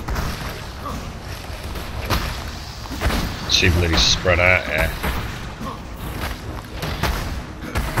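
Fiery spells crackle and burst in quick succession.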